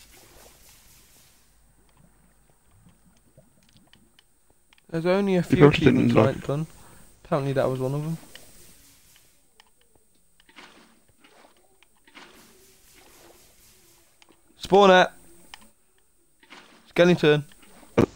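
Water splashes and flows as it is poured out.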